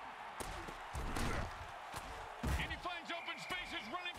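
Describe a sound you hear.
Players crash together in a tackle with heavy thuds.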